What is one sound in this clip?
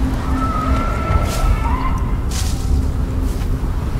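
Dry branches rustle as plants are gathered by hand.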